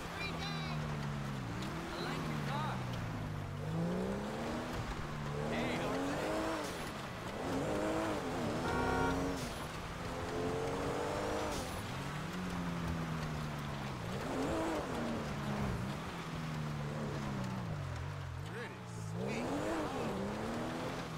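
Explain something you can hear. A car engine revs up and down loudly, over and over.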